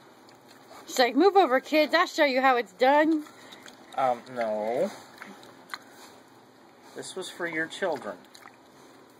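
A dog whines in high, short yelps up close.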